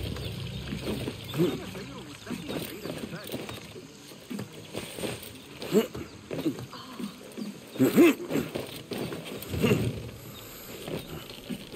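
Wooden boards creak and knock as someone climbs.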